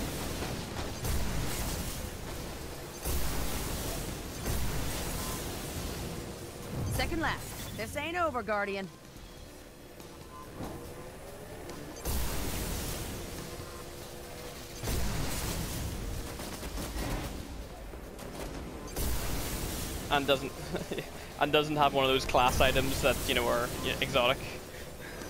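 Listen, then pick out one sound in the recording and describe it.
A racing hover vehicle's engine roars and whooshes at high speed.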